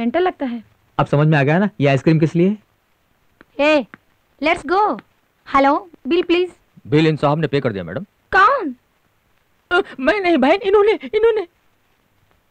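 A young man speaks with animation, close by.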